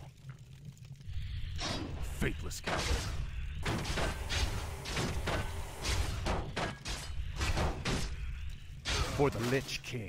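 Blades strike and clash again and again in a fight.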